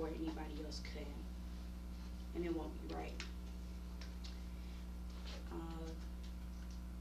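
A young woman speaks calmly, in short phrases with pauses.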